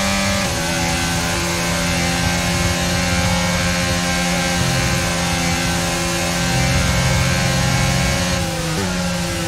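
A racing car engine screams at high revs, dropping in pitch as it shifts gears.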